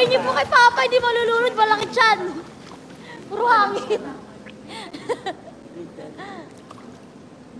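A woman sings in a high voice nearby.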